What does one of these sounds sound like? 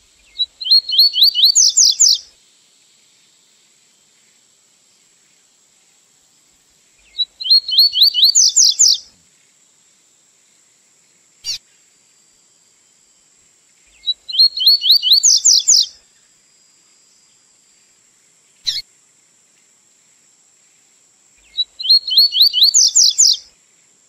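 A small songbird sings a quick, high, trilling phrase again and again, close by.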